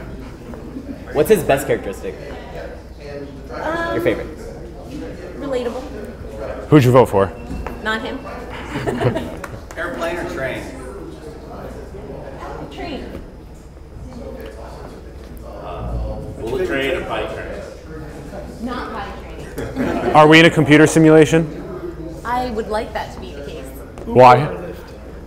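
Men and women talk in turn nearby.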